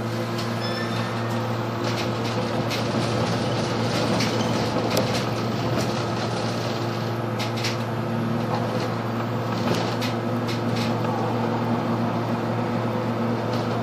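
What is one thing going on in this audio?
The bus body rattles and clicks as it drives over the road.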